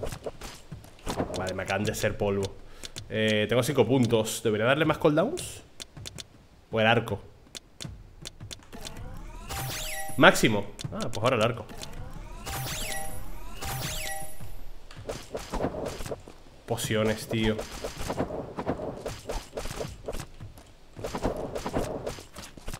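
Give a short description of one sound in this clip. A man speaks with animation into a headset microphone.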